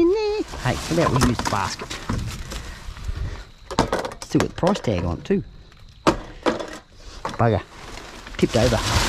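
A plastic basket knocks and scrapes against a metal bin.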